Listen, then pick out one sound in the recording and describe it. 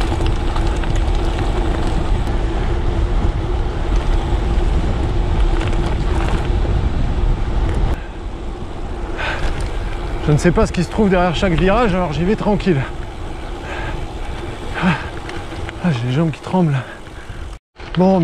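Bicycle tyres roll and crunch over a gravel path.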